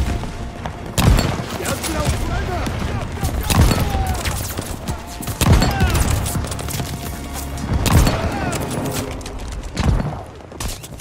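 Rifle shots crack loudly, one at a time.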